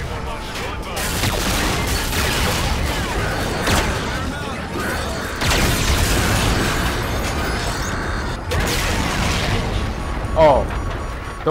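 Explosions boom and rumble in a video game.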